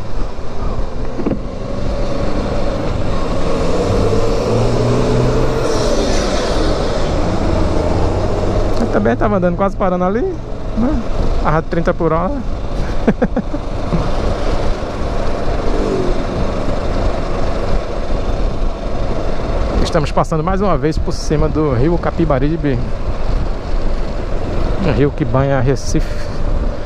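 Wind rushes loudly past a riding motorcyclist.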